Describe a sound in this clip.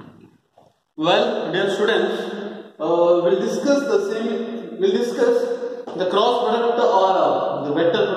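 A young man lectures calmly, close by.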